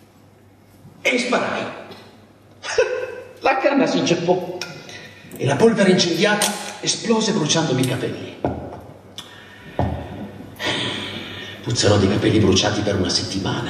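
A man speaks theatrically from a stage, heard from a distance in a hall.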